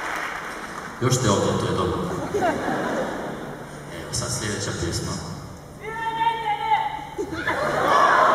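A young man talks with a smile into a microphone, heard through a loudspeaker.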